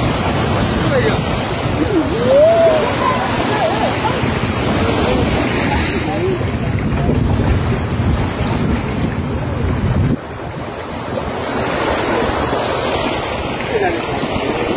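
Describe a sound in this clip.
Small waves lap on the water.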